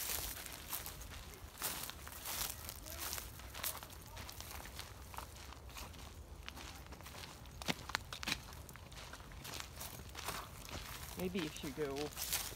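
Footsteps crunch on a dry dirt path strewn with leaves.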